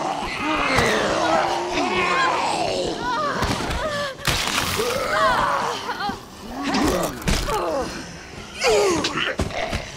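Heavy blows and thuds land during a struggle.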